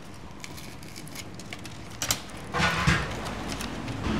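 Metal scrapes against grilled fish.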